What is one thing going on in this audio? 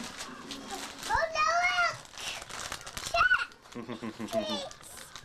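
A young girl squeals and babbles in a high voice close by.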